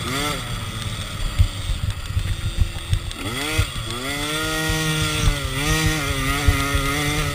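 A dirt bike engine revs and roars up close, rising and falling in pitch.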